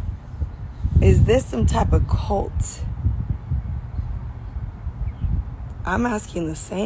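A young woman talks casually and close up, with pauses.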